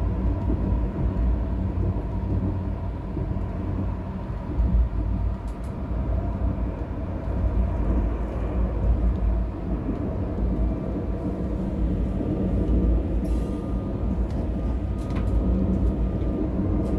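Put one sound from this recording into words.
A windshield wiper swishes across the glass.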